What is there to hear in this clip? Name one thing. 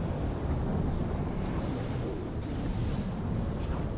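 A swirling vortex rumbles deeply overhead.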